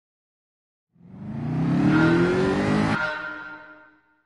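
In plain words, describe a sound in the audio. A race car engine revs up loudly, rising in pitch.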